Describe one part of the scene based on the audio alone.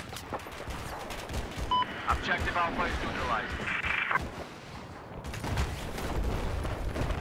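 A helicopter's rotor thumps and drones steadily.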